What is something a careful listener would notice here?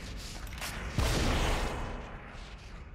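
A shotgun fires a loud blast that rings briefly.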